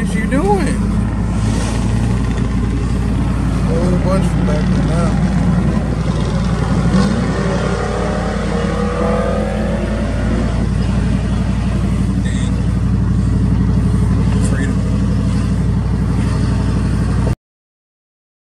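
A car engine hums steadily from close by.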